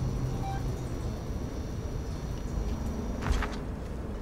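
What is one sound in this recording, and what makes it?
A handheld motion tracker beeps softly.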